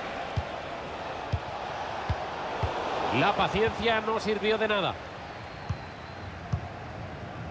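A football thumps as players kick it.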